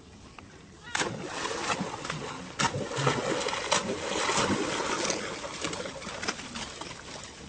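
A monkey splashes through water.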